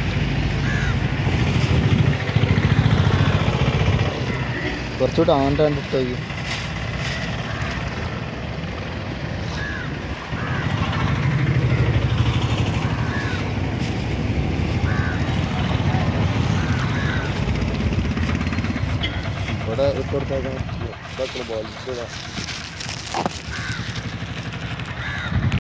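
Water splashes and churns as a crowd of fish thrash at the surface.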